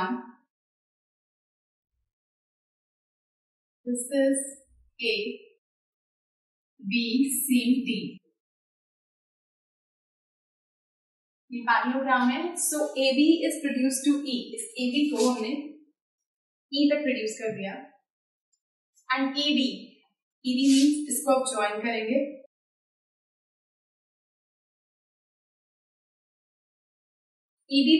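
A young woman speaks calmly and clearly, close by, explaining in short phrases with pauses.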